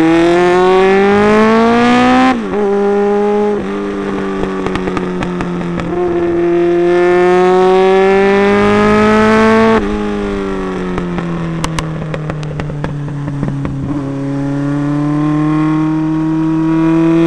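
A motorcycle engine roars close by, rising in pitch as it speeds up and dropping as the gears shift.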